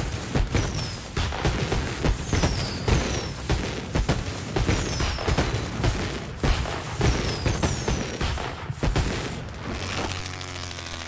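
Fireworks pop and crackle.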